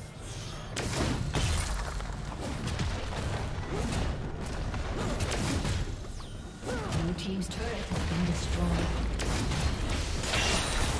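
Spell blasts and impacts crash and whoosh in a video game.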